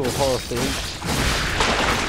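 A blade clashes and slashes with metallic hits.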